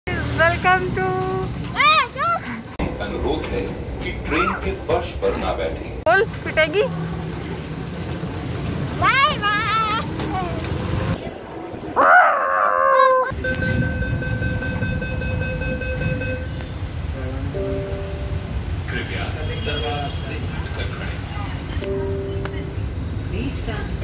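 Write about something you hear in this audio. A train rumbles steadily along.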